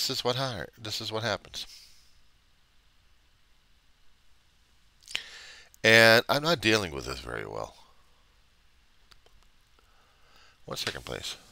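A middle-aged man speaks calmly and close into a headset microphone, in short bursts with pauses.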